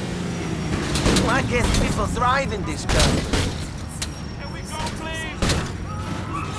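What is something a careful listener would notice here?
Cars crash together with heavy metal impacts.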